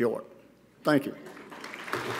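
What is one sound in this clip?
An elderly man speaks into a microphone.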